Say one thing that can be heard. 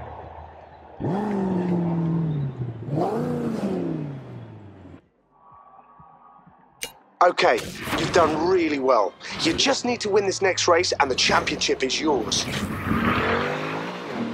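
Car engines rev loudly.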